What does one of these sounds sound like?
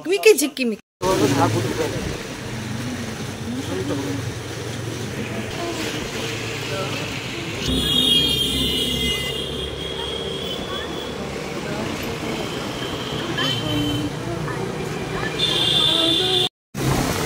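A scooter engine hums steadily while riding along a busy street.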